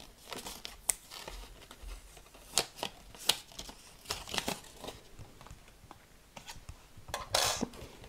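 Thin card crackles as a cut shape is peeled away.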